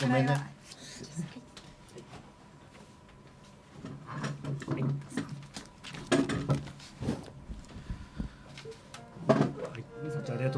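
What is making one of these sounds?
Young men talk and laugh near microphones.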